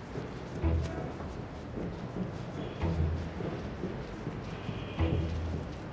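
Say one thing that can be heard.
Footsteps thud on a hard floor indoors.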